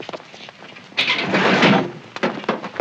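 A metal vehicle door creaks and bangs shut.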